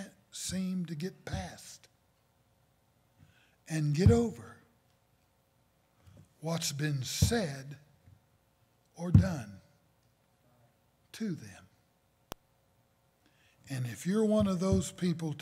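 An elderly man speaks slowly and earnestly through a microphone, with long pauses.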